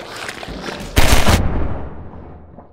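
A pistol fires a loud shot that echoes off the walls.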